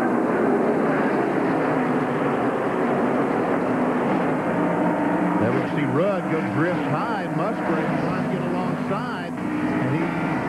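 Several race car engines roar past at high speed.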